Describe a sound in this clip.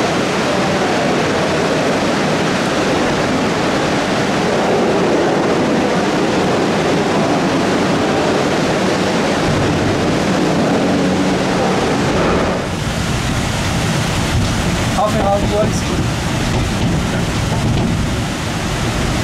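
A rail car rumbles and whines as it moves along a track inside an echoing tunnel.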